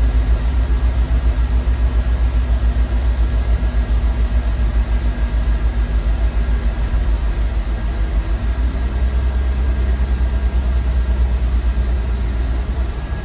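Tyres hum on a wet road.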